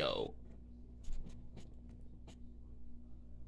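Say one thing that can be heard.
A young man gulps a drink in loud swallows.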